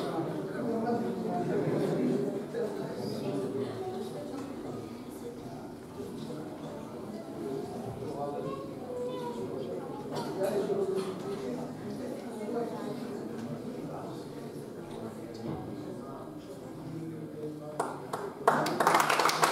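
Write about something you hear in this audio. A man talks quietly at a distance.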